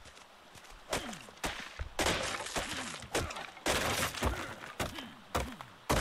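Hands rustle through leafy plants.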